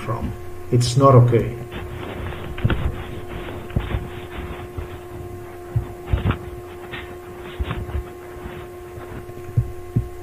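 Small glass vials clink softly as a hand touches them.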